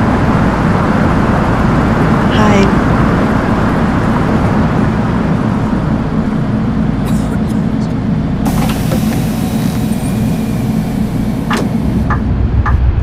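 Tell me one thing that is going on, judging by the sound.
A bus engine idles with a low, steady rumble.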